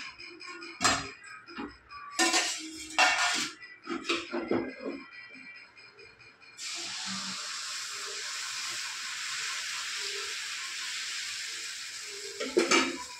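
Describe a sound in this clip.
Metal utensils clink and scrape against pans.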